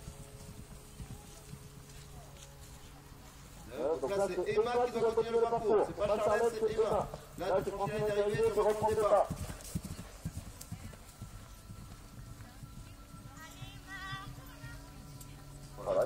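A horse's hooves thud softly on grass as it canters.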